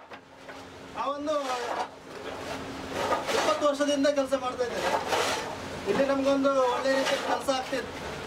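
Clay tiles clack as they are handed along and stacked.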